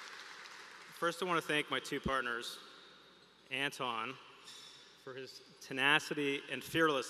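A man speaks calmly into a microphone over a loudspeaker in a large hall.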